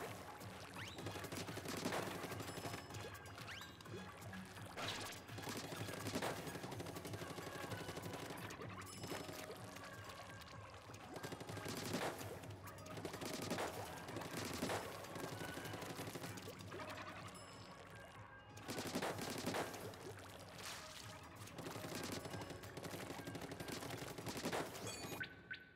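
Game music plays steadily.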